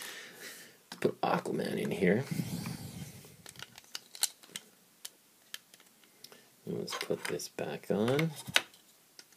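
Small plastic bricks click and snap together.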